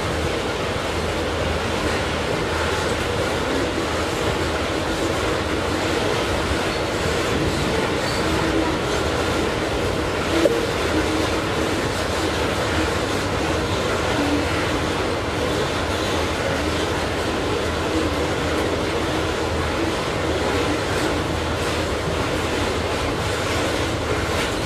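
A long freight train rumbles steadily past on the rails.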